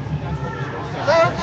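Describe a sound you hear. A person close by shouts a short call.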